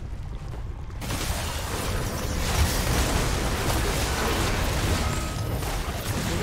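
Spell effects whoosh and crackle in a fast fight.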